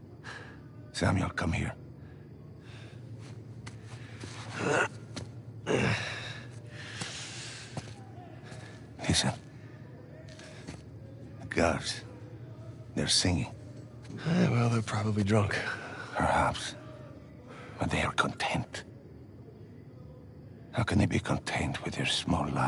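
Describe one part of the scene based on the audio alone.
A man with an accent speaks calmly, close by.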